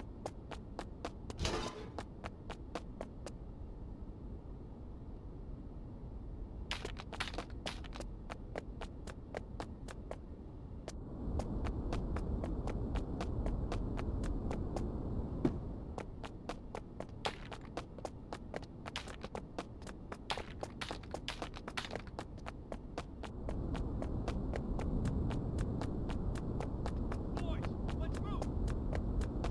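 Footsteps tread at a steady walking pace.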